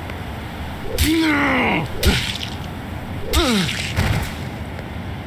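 A knife strikes flesh with sharp, wet thuds.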